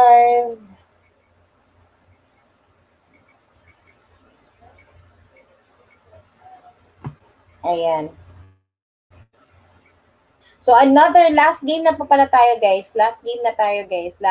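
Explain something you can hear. A woman sings through a microphone on an online call.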